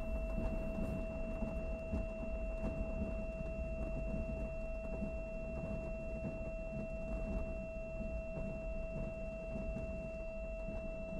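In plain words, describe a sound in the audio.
A propeller aircraft engine drones steadily and loudly.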